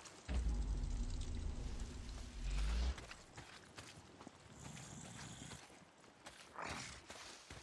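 Footsteps crunch over dry grass and twigs.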